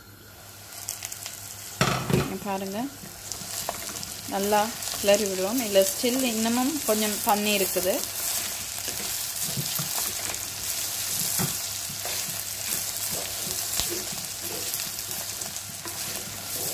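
Food sizzles and hisses in a hot pot.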